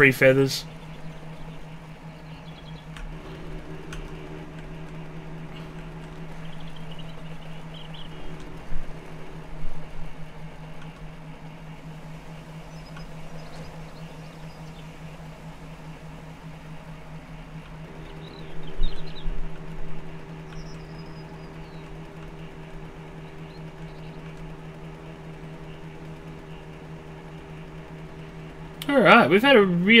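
A motorbike engine hums steadily as the bike rides over rough ground.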